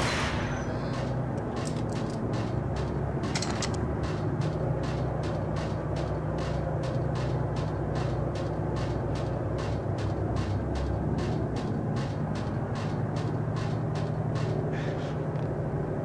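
Footsteps clang quickly on a metal walkway.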